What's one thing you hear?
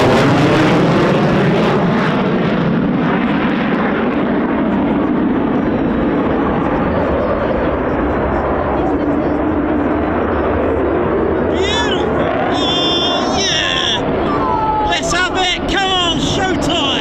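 A jet engine roars loudly overhead, rumbling and rushing throughout.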